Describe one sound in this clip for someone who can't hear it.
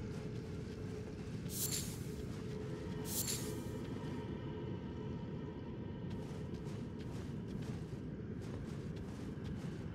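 Footsteps rustle through grass at a steady pace.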